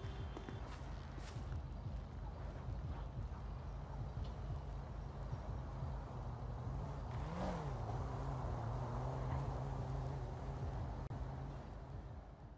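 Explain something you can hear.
Footsteps patter on concrete.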